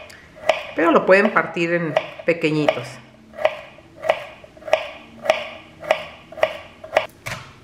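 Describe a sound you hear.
A knife chops celery on a wooden board with steady, regular knocks.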